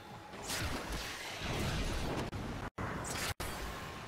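Metal blades clash and slash.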